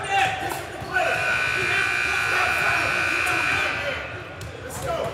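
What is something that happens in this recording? A referee blows a whistle sharply.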